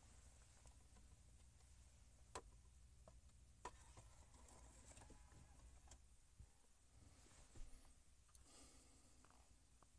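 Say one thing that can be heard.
A car disc player's mechanism clicks and whirs as it loads a disc.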